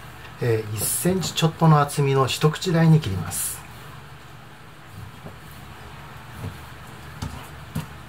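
A knife slices through raw meat and taps a cutting board.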